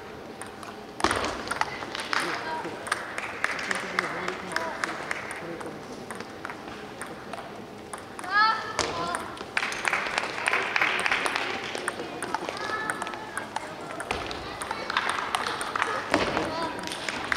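A ping-pong ball clicks back and forth on paddles and a table in a large echoing hall.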